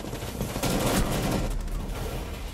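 An automatic rifle fires a burst of rapid shots.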